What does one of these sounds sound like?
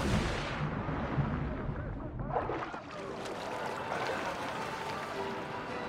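Water sloshes and laps around a swimmer.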